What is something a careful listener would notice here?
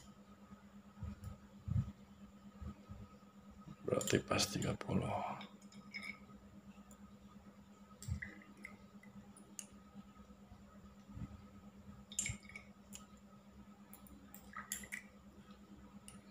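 A glass dropper taps lightly against a glass cylinder.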